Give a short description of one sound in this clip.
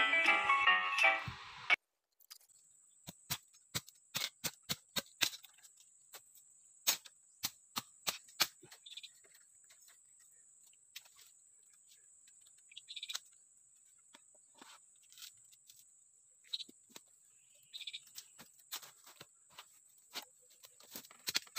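Dry leaves and twigs rustle underfoot.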